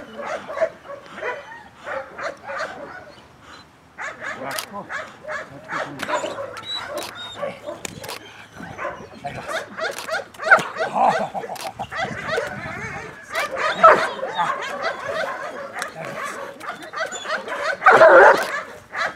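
A man shouts commands at a dog.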